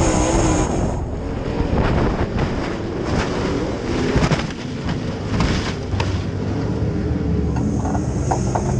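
Dirt and debris clatter against a race car's body.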